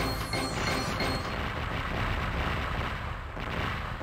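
A score counter ticks rapidly.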